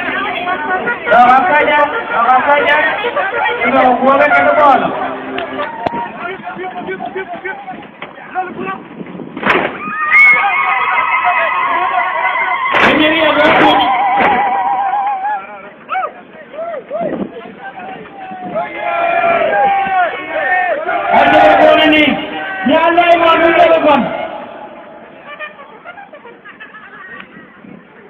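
A crowd of men chants and sings loudly outdoors.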